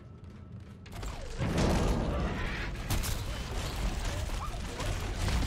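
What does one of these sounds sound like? Gunfire rattles loudly.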